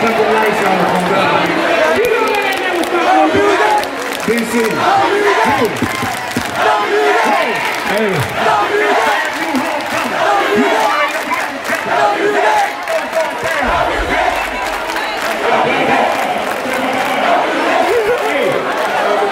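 A man talks loudly into a microphone over a loudspeaker in a large echoing hall.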